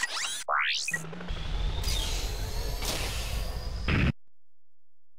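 A spaceship engine roars loudly, then cuts off.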